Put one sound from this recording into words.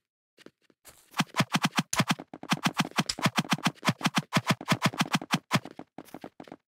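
Sword blows land in a fast flurry of hits.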